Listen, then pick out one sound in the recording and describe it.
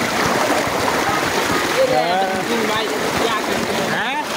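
Water gushes and splashes heavily.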